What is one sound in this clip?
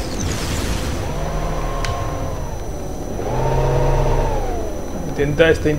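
A hovering aircraft's engine hums and swells.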